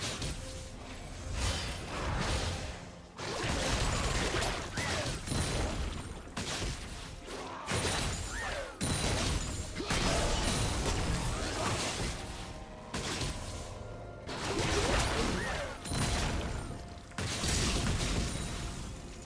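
Game spells and attacks burst and clash in rapid succession.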